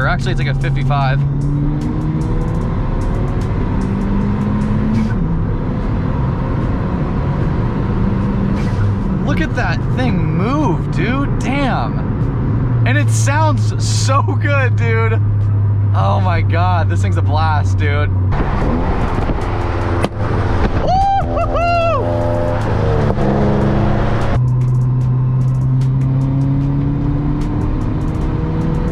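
Tyres roar steadily on a highway.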